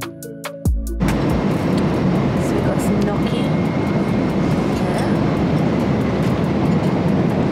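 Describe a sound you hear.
Aircraft engines roar steadily inside a cabin.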